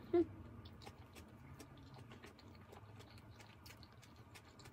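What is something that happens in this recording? A young woman chews and smacks her lips softly.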